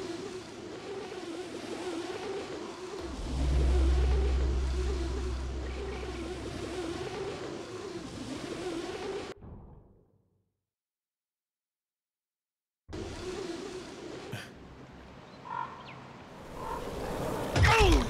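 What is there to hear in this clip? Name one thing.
Wind rushes steadily past during a glide through the air.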